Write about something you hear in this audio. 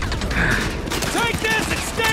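A man shouts urgently over the noise.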